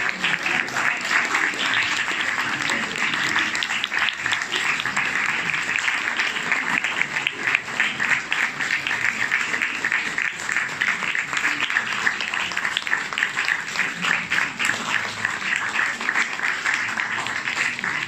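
A crowd applauds steadily in a room.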